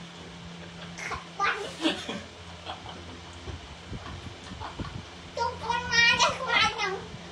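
A man laughs loudly close by.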